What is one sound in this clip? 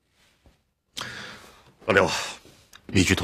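A middle-aged man gives an order in a firm voice.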